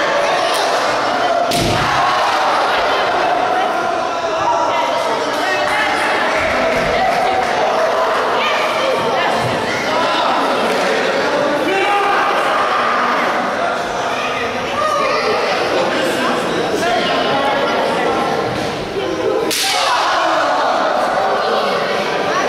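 A small crowd shouts and cheers in an echoing hall.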